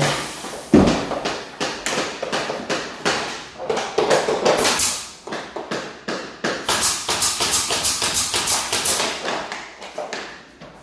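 A hammer taps repeatedly on wooden floorboards.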